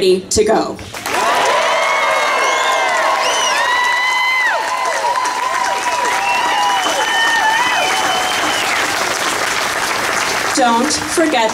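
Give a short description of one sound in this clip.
A woman sings in long, wavering notes through a loudspeaker.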